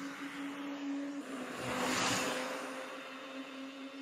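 A bicycle rolls past close by on a paved road.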